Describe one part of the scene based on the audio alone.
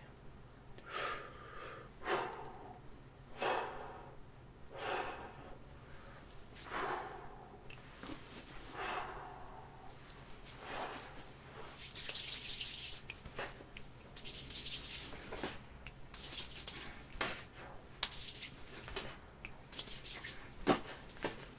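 A young man makes short, forceful vocal sounds close by.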